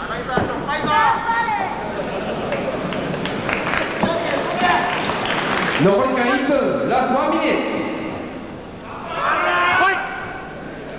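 Spectators shout out loudly one by one.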